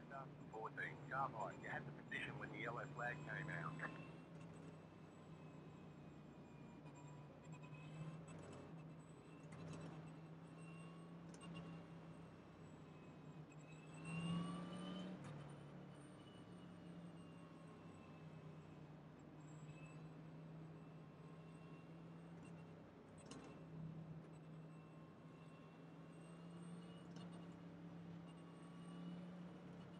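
A race car engine hums steadily at low speed.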